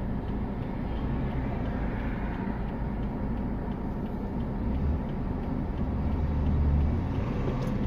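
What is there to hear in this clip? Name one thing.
Nearby vehicles idle and rumble in slow traffic.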